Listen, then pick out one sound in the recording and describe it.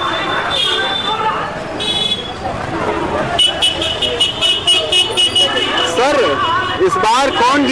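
Motorbike engines hum past on a busy street.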